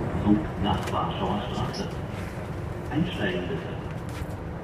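A woman talks on a phone nearby.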